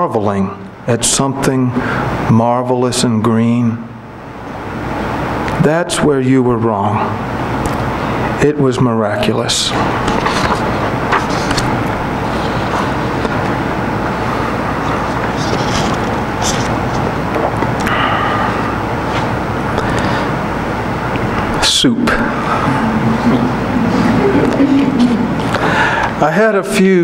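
A middle-aged man reads aloud calmly into a microphone.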